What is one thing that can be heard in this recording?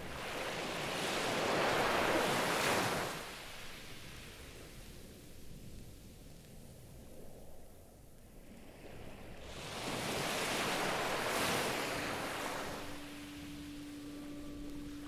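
Electronic music plays loudly, with hissing noise sweeps that swell and fall away.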